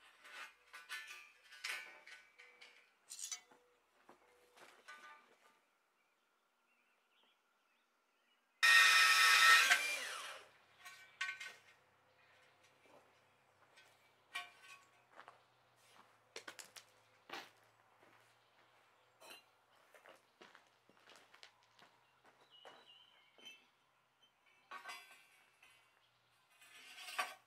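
A trowel scrapes and taps against concrete.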